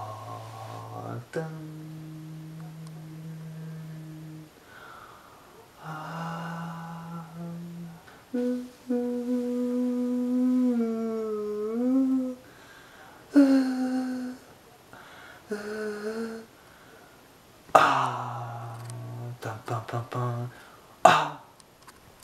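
A young man sings with long held notes close by.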